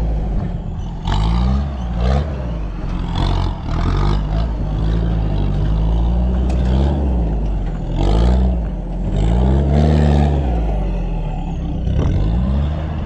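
Tyres crunch and grind over loose dirt.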